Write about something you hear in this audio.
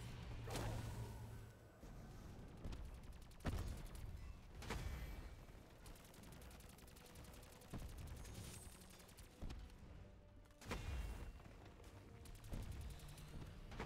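Guns fire in sharp bursts, with loud shots and bangs.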